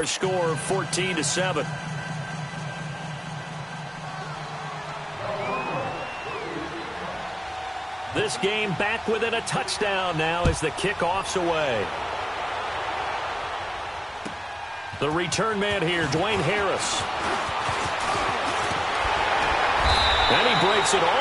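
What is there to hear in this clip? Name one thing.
A stadium crowd roars, swelling louder as the play unfolds.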